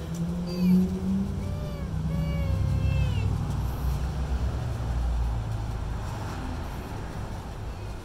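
Dry grass rustles as a toddler's hands poke at it.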